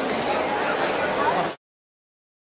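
A small robot beeps and warbles.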